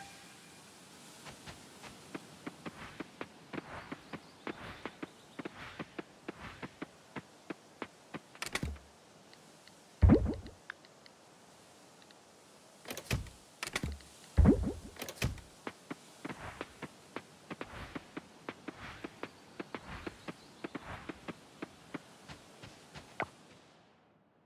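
Quick footsteps patter over dirt ground.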